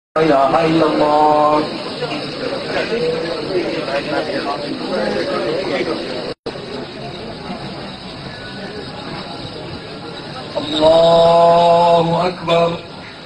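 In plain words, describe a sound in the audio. A man calls out in a long, drawn-out chant.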